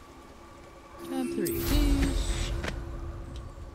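A magical whoosh bursts out as a rider takes off.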